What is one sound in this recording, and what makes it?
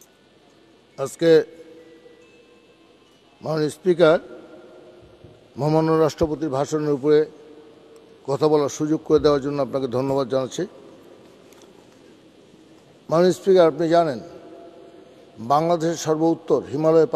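An elderly man speaks in short, halting phrases into a microphone.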